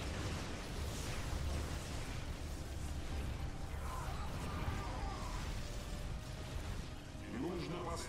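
Explosions rumble low and steadily.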